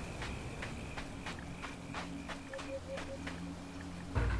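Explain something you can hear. Footsteps crunch steadily over leaves.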